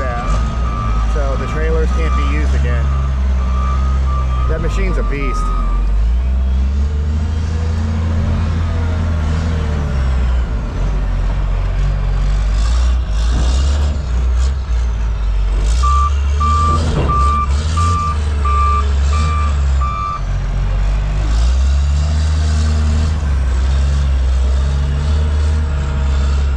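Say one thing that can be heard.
A heavy machine's diesel engine rumbles and revs up and down close by.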